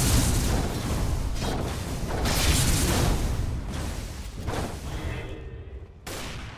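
Game spells crackle and burst in a loud fight.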